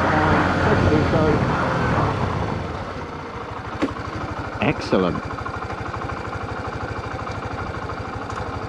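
A single-cylinder 125cc motorcycle engine eases off and settles to a low idle.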